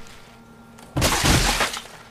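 A game character crashes with a loud, wet splattering burst.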